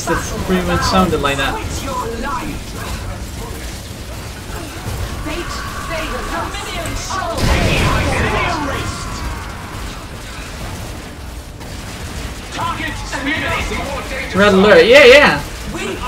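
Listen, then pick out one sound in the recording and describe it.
Gunfire and explosions crackle and boom in a game battle.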